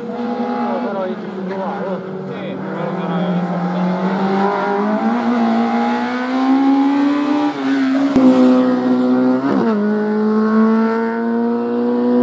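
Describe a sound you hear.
A rally car engine revs hard as it approaches and races past.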